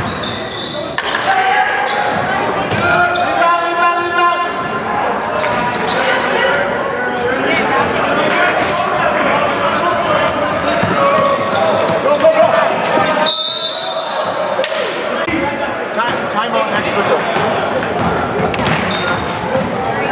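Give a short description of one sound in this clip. A crowd of spectators chatters and cheers in an echoing gym.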